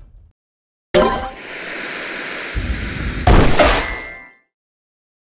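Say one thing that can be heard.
A cartoon bomb fizzes and then explodes with a loud boom.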